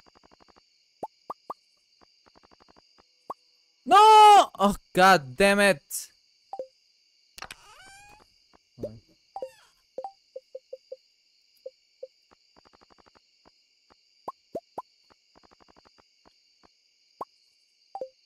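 Short soft game menu blips sound as a cursor moves over items.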